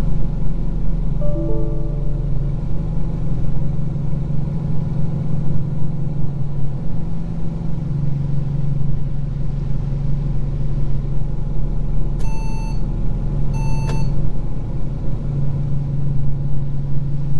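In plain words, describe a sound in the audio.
A bus engine hums steadily at a low pitch.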